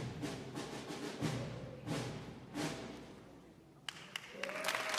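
A concert band plays in a large echoing hall, with the final notes ringing out.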